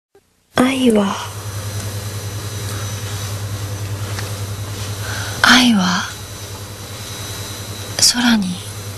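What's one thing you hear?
A young woman sighs softly close by.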